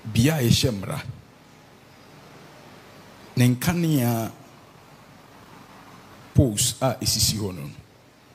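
A man preaches loudly and with animation into a microphone, in short bursts with pauses.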